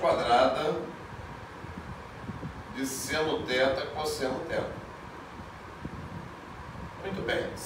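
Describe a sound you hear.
A middle-aged man speaks calmly and explains, close by.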